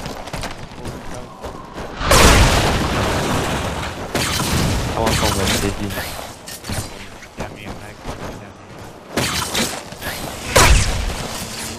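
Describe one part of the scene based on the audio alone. Explosions boom and throw up snow.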